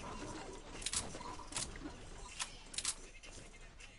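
Footsteps patter quickly on a hard surface.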